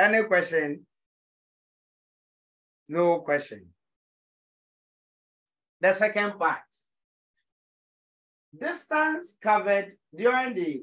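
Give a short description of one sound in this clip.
A man speaks calmly into a microphone, explaining in short phrases with pauses.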